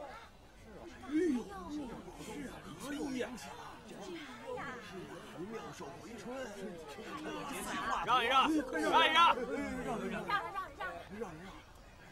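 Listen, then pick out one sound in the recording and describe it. Men talk with animation nearby.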